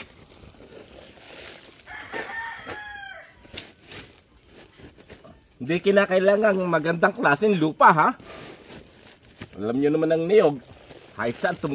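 A metal scoop scrapes and pours loose soil into a plastic bag.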